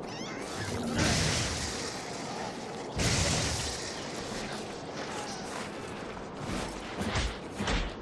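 Loud explosions boom and crackle.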